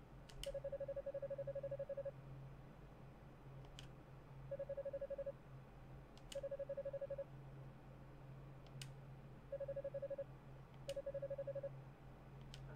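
Quick, rapid beeps chatter in short bursts as text prints out.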